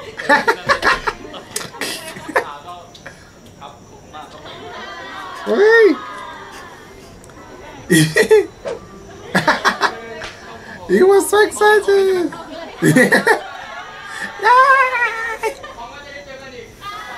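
A young man laughs loudly and heartily close to a microphone.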